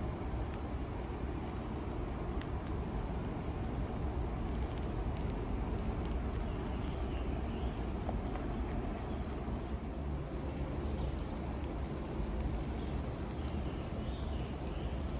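A camping gas burner roars steadily.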